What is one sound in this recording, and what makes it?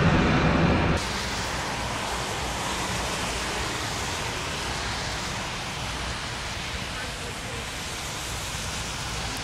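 A jet airliner's engines hum steadily in the distance.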